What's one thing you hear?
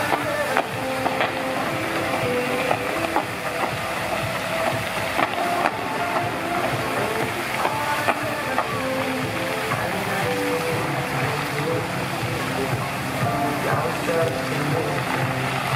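Fountain jets spray and splash steadily into a pool.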